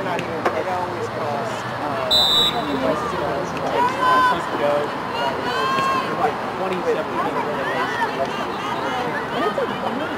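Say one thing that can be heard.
Young women shout and call to each other across an open outdoor field.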